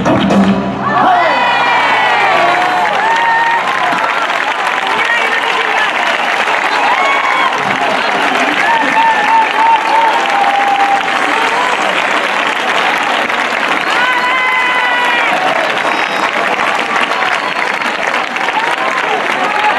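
A large outdoor crowd cheers, whistles and applauds.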